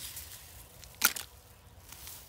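Plastic litter clatters into a plastic bucket.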